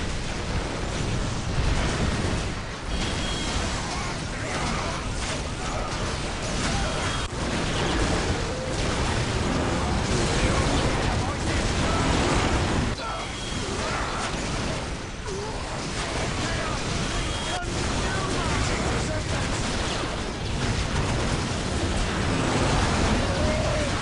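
Guns fire in rapid bursts amid a battle.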